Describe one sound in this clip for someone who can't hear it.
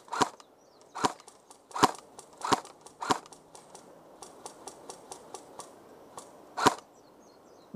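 An airsoft rifle fires sharp single shots close by.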